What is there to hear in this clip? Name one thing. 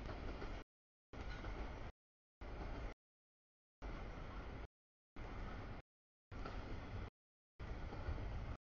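A double-stack container freight train rolls past.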